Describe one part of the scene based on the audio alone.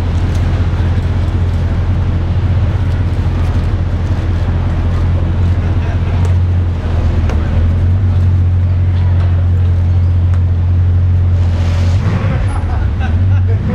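A sports car's engine idles with a deep, steady rumble close by.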